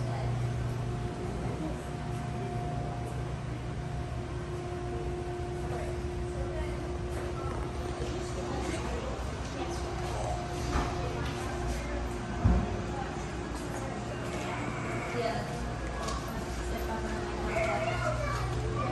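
A low, steady hum of aquarium equipment fills an echoing indoor room.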